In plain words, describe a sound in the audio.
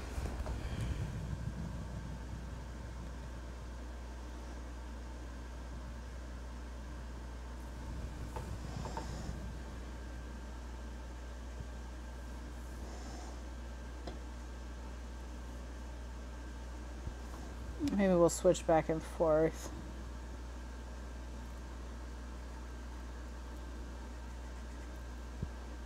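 A marker squeaks softly across paper.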